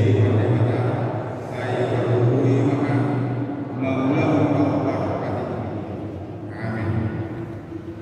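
A man sings slowly through a microphone in a large echoing hall.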